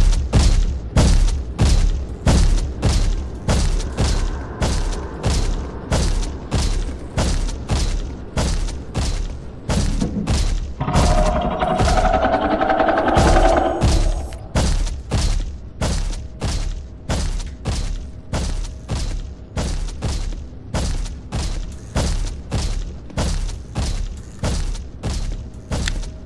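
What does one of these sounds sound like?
Quick, heavy footsteps thud steadily on a hard floor.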